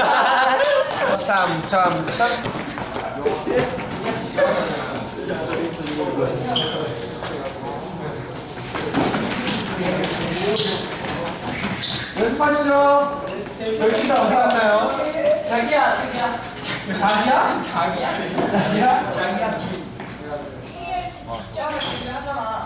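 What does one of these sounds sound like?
Young men chatter and call out.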